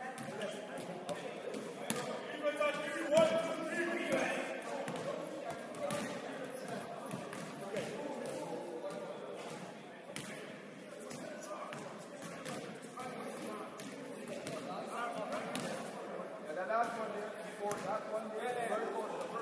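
Basketballs bounce on a hardwood floor, echoing in a large hall.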